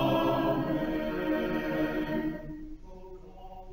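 A loud chord ends and rings out in the hall.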